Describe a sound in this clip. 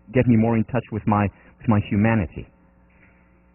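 A man speaks calmly through a headset microphone in a large hall.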